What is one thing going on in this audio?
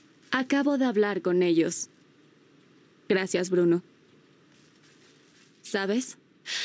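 A young woman speaks calmly in short phrases, close by.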